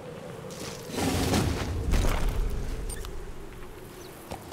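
A horse gallops with hooves thudding on dry ground.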